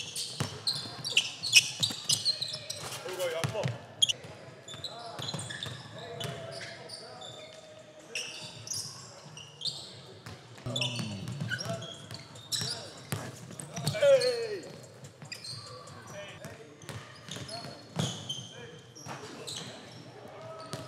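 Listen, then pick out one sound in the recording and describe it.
Sneakers squeak sharply on a hardwood court, echoing in a large hall.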